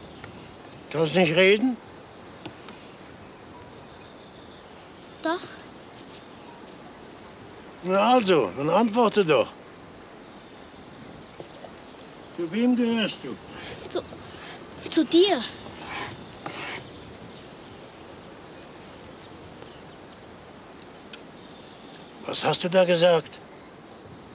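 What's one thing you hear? An elderly man speaks calmly and slowly, close by.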